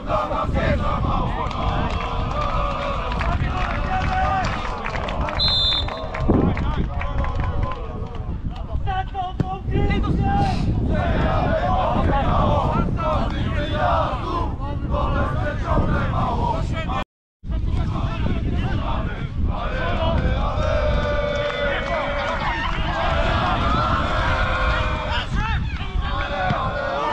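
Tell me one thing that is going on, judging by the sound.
Men shout and call out across a sports field.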